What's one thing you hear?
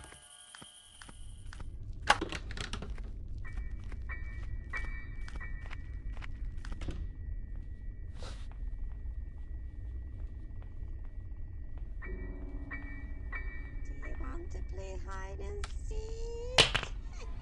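Footsteps thud on a creaky wooden floor.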